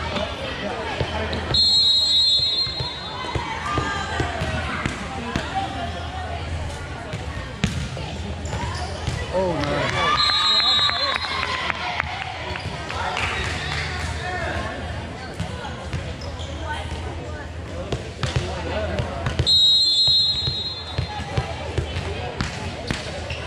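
Young girls shout and call out to each other in an echoing hall.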